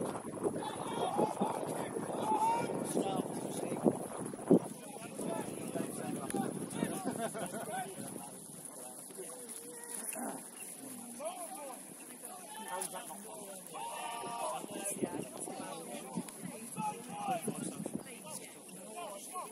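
Young players shout and call to one another from a distance on an open field.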